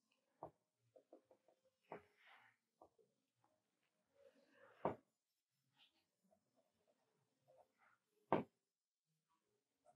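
A pencil scratches and scrapes softly across paper.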